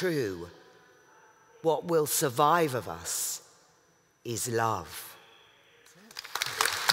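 A woman reads out slowly through a microphone in a large echoing hall.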